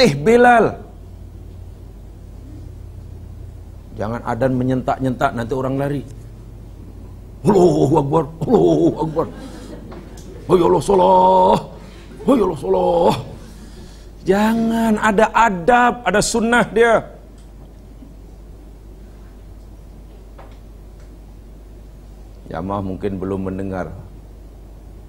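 A middle-aged man speaks with animation into a microphone, with long pauses between phrases.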